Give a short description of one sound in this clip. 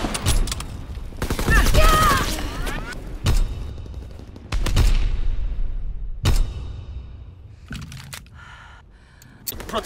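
Gunshots fire in sharp bursts and echo off walls.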